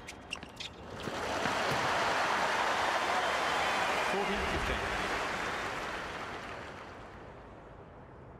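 A large crowd applauds loudly, then fades away.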